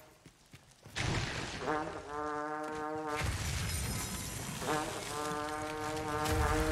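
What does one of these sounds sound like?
A magic spell crackles and hums loudly.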